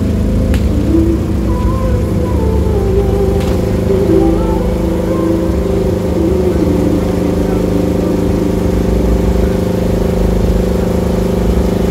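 Loud music with heavy, booming bass blares from a large loudspeaker system.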